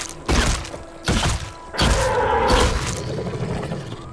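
A spear strikes an animal with heavy thuds.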